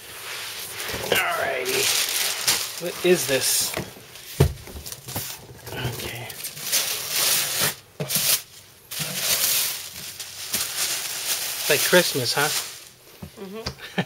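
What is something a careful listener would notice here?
Plastic wrapping crinkles and rustles as a boy tears it off.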